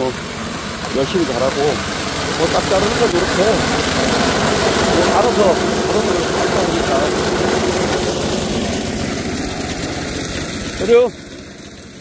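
A tiller engine runs close by with a steady, rough drone.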